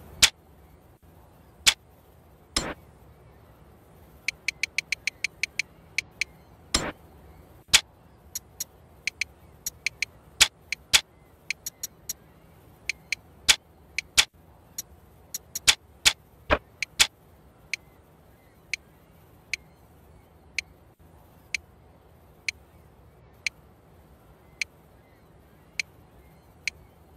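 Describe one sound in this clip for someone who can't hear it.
Short electronic menu clicks tick again and again, sometimes in quick runs.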